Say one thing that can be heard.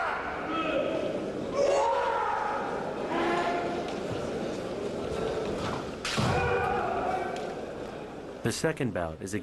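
A man shouts loudly in an echoing hall.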